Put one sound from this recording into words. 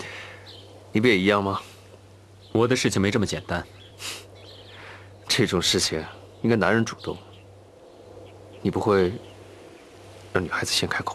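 Another young man speaks softly and teasingly.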